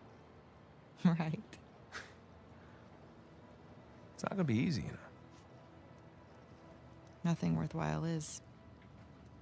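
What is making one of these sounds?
A woman answers calmly.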